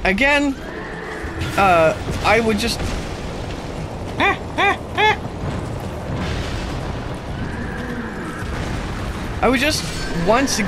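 A man talks excitedly over a headset microphone.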